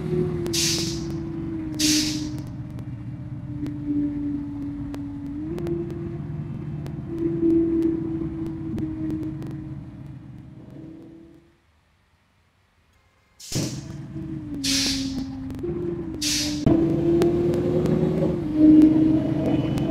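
A bus engine drones steadily, rising and falling in pitch.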